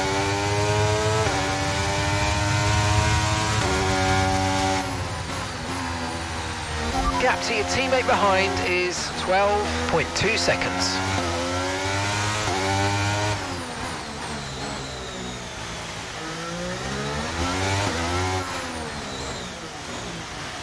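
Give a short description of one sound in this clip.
A racing car engine screams at high revs and drops in pitch with each gear change.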